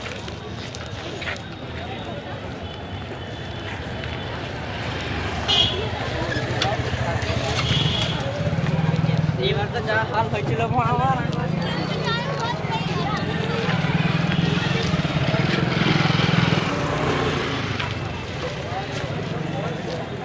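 A busy crowd of men and women murmurs and chatters outdoors.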